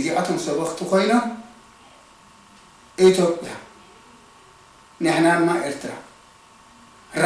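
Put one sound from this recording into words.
An elderly man speaks calmly in short phrases with pauses, close by.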